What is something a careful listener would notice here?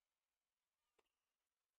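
A tennis ball bounces once on a hard court.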